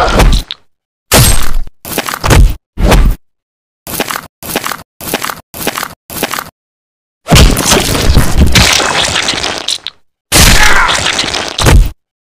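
A blade slashes through flesh with a sharp swish.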